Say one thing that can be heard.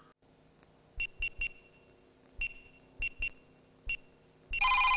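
A phone keypad beeps as a number is dialled.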